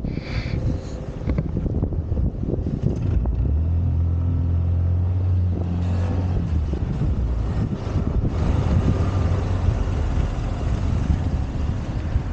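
Scooter tyres rumble over paving stones.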